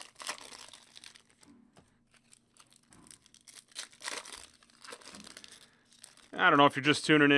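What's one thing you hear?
A foil wrapper crinkles and rustles in hands.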